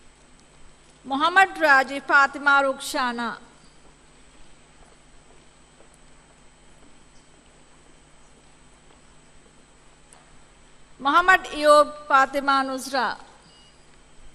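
A woman reads out over a loudspeaker in a large hall.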